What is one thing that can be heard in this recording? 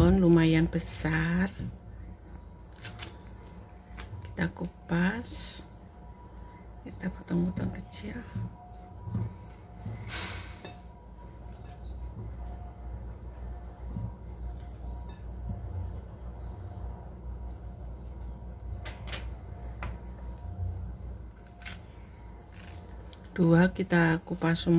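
A banana peel tears softly as it is pulled apart.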